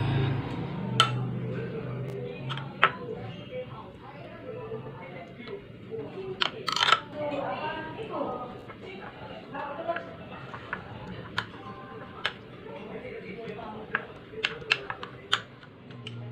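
A metal spoon clinks against a glass bowl.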